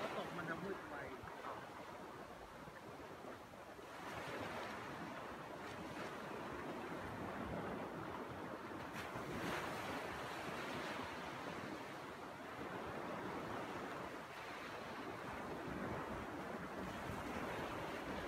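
Small waves wash gently onto a sandy shore, outdoors in light wind.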